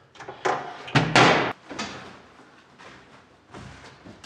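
Clothes rustle as they are dropped into a washing machine.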